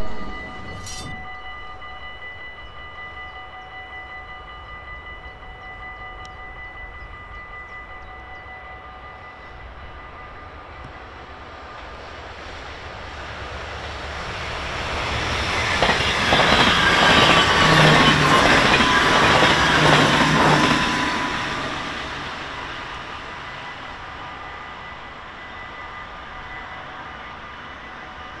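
A level crossing bell rings steadily.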